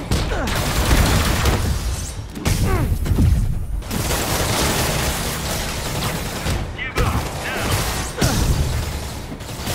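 Laser beams zap and crackle.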